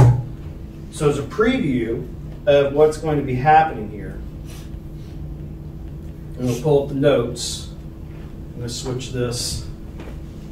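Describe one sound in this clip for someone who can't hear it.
A man speaks calmly from across a room.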